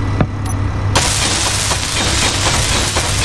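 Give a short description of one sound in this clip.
A welding tool hisses and crackles steadily.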